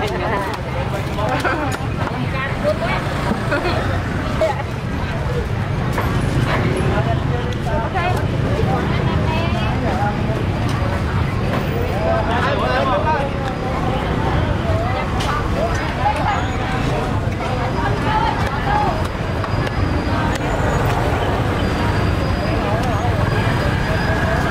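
Many voices chatter nearby throughout.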